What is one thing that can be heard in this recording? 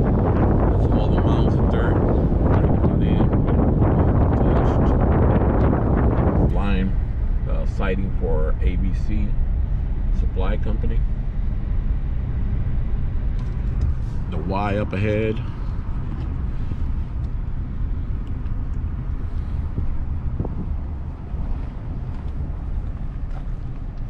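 A car drives steadily along a road with a low rumble.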